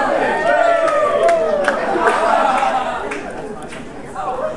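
A crowd of young people cheers and shouts loudly in a large echoing hall, then quiets down.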